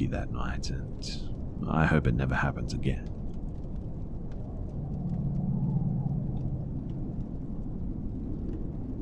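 Wind blows steadily outside in a snowstorm.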